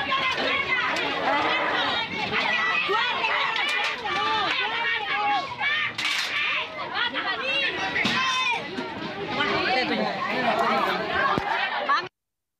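A crowd of men and women shout and argue excitedly close by.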